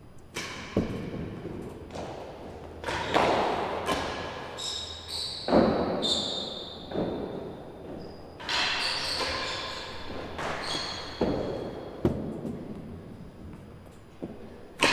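A ball thuds off walls and floor, echoing in a large hall.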